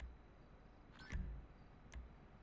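A soft electronic chime confirms a purchase.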